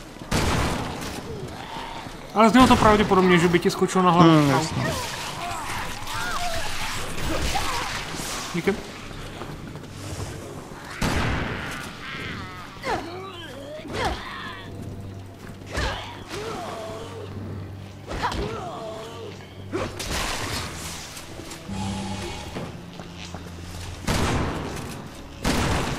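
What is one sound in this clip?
Gunshots fire in sharp bursts, echoing off hard walls.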